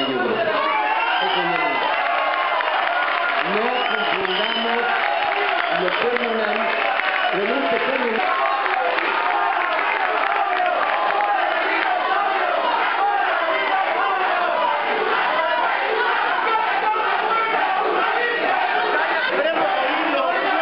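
A crowd of people talks and murmurs all around.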